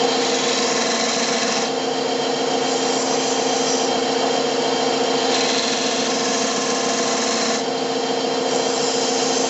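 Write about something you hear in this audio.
A chisel scrapes and hisses against spinning wood in bursts.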